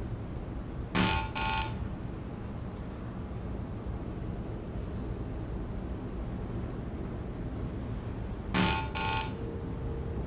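A handheld device gives a sharp electronic buzz of refusal.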